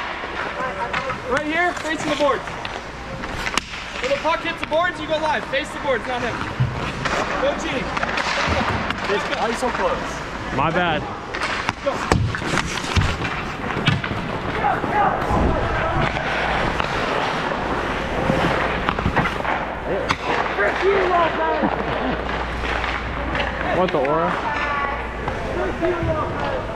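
Skate blades scrape and carve across ice.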